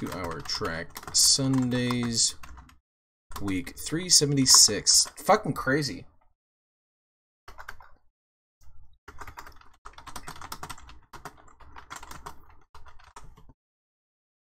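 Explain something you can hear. A man speaks with animation into a nearby microphone.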